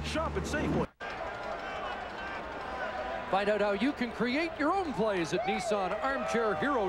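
A large crowd cheers in an open stadium.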